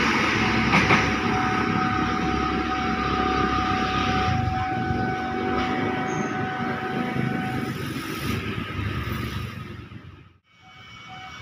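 A train rolls away into the distance and fades.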